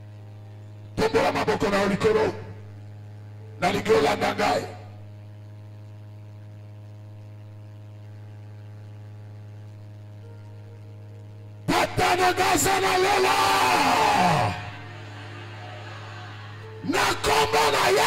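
A man preaches forcefully into a microphone over loudspeakers, in bursts with pauses.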